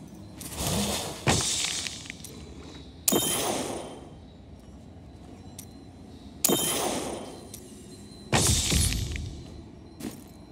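Magical shimmering whooshes burst out again and again, each one fading away.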